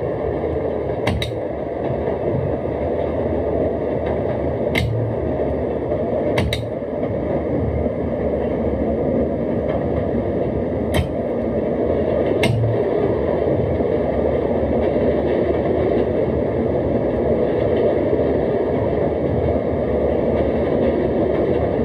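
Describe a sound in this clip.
A train rumbles steadily along rails.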